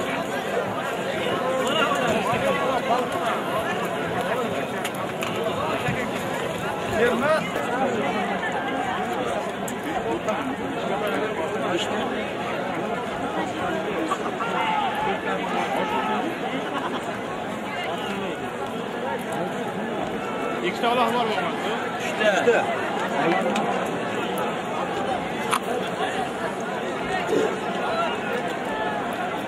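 A large outdoor crowd murmurs and chatters steadily.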